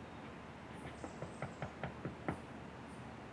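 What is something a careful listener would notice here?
A hand knocks on a door several times.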